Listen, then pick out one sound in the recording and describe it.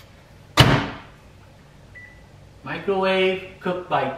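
Microwave buttons beep.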